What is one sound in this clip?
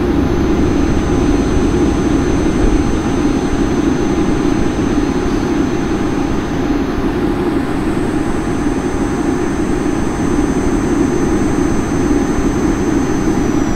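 A jet engine hums steadily inside an aircraft cabin.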